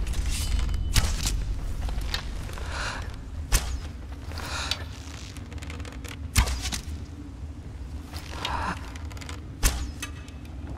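A bowstring twangs sharply as arrows are loosed.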